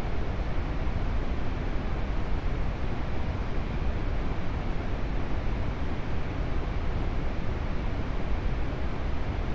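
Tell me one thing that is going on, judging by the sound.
A jet engine roars steadily from inside a cockpit.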